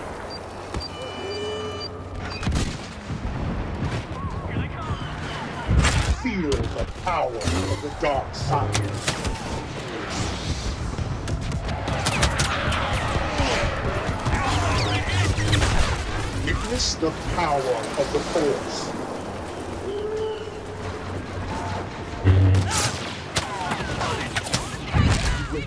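Blaster shots fire and crack in quick bursts.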